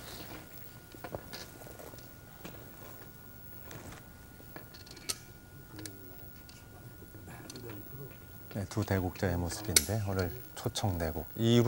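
A game stone clicks down on a wooden board.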